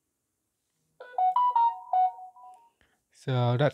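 A phone plays a short rising chime.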